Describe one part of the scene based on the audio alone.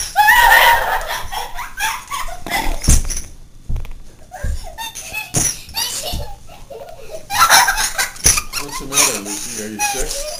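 A young child squeals and shrieks loudly close by.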